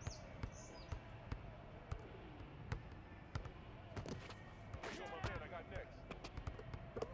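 A basketball bounces steadily on a hard court.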